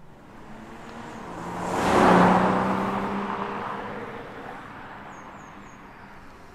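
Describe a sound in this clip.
A car speeds past on a road with a rising and fading whoosh.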